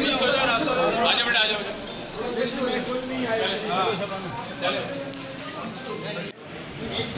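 A crowd of men shout and talk over one another close by.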